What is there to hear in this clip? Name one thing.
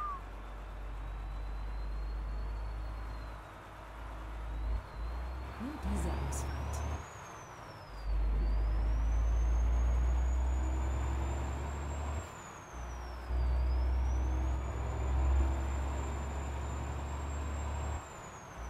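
A truck engine drones low and steady, dipping briefly as the gears change.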